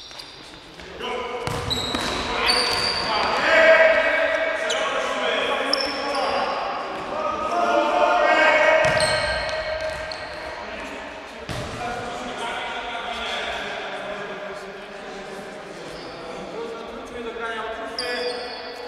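Young men shout to one another across an echoing hall.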